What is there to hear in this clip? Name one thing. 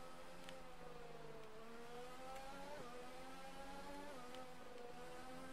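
A racing car engine whines at high revs, rising in pitch and dropping briefly with each gear change.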